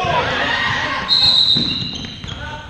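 A referee's whistle blows once briefly.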